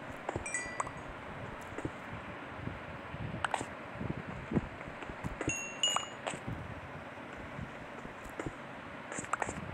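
Stone blocks crumble and pop as they break.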